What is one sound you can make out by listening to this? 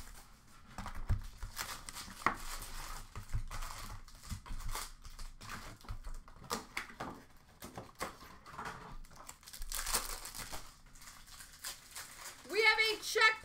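Foil card packs crinkle and tear as hands open them.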